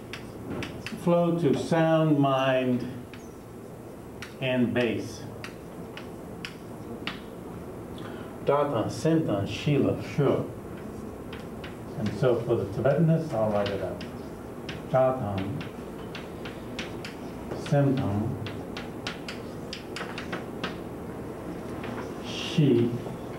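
A middle-aged man speaks calmly in a lecture, close by.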